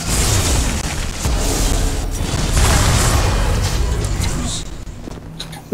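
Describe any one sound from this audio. A blast of fire roars loudly.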